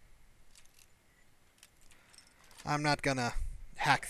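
A metal pin scrapes and clicks inside a lock.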